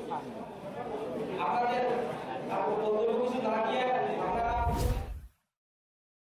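A man speaks forcefully into a microphone, heard through loudspeakers.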